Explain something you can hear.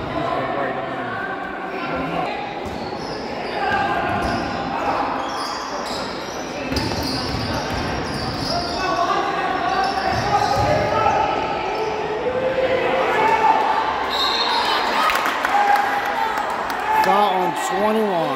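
A crowd of spectators talks and cheers in an echoing gym.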